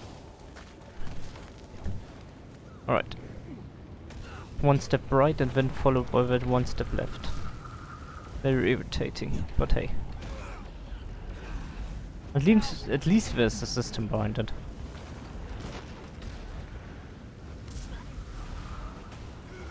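Fiery spell effects burst and crackle.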